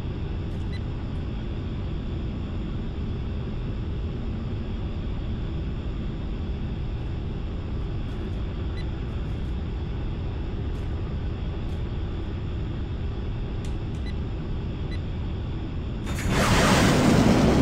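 A jet engine roars steadily in a cockpit.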